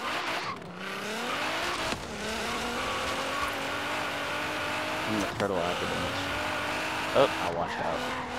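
A car engine revs and drones as the car speeds along.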